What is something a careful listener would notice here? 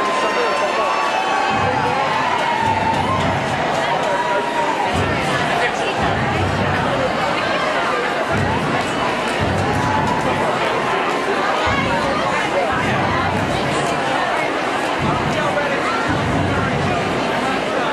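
Many voices of men and women talk and shout all around.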